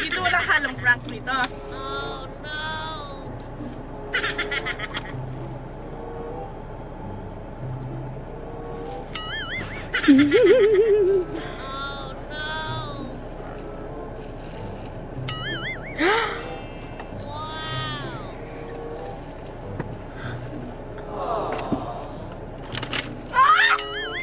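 Young girls talk and laugh excitedly close by.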